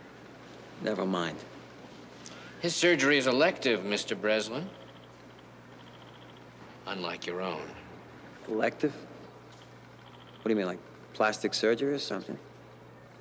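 A man speaks calmly and quietly, close by.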